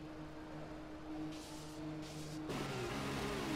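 A racing car engine idles with a steady hum.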